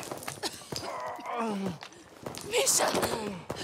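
A man groans in pain close by.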